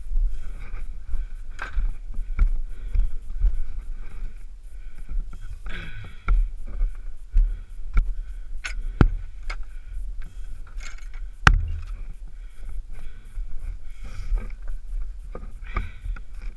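A bicycle frame rattles and clunks over bumps.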